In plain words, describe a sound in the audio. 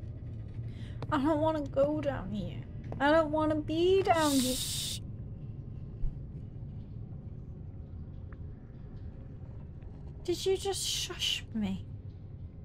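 A young woman speaks with animation into a close microphone.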